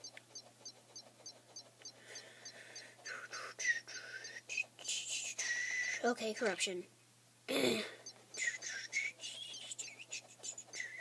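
A tablet game plays whooshing and zapping sound effects through a small speaker.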